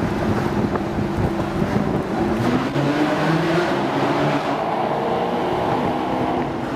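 A car engine roars loudly, echoing in a tunnel, rising and falling in pitch.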